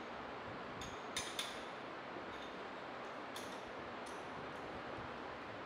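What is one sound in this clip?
Metal tools clink against a metal apparatus.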